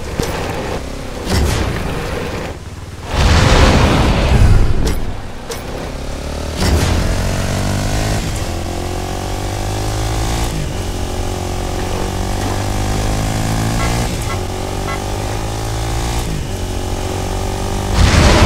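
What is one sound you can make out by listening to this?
A small off-road vehicle's engine hums and revs repeatedly.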